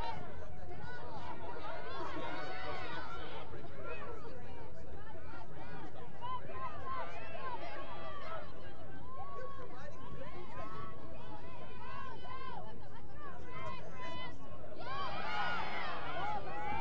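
Young women shout and call out to one another outdoors.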